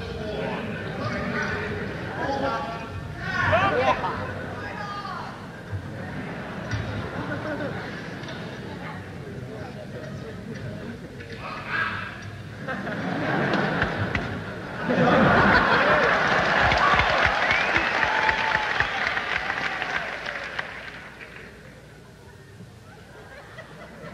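An electric guitar plays loud, distorted chords.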